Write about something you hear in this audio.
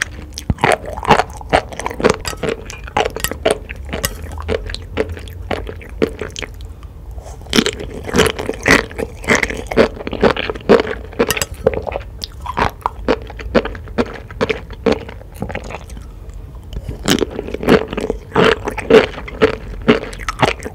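Sea grapes pop and crunch wetly close to a microphone.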